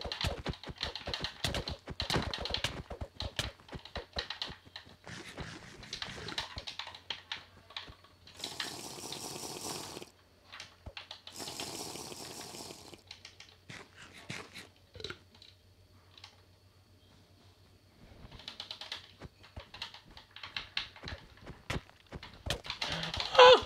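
Buttons on a game controller click rapidly.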